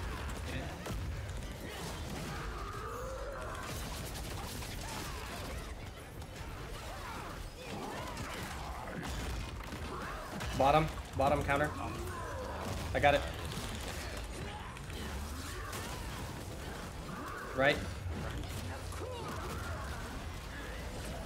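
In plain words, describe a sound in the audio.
Magic blasts and combat effects crackle and boom from a game.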